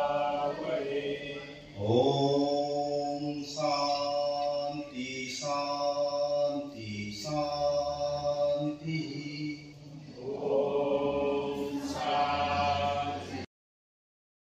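A man sings slowly into a microphone.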